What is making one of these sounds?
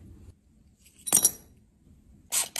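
Broken glass shards clatter onto a surface.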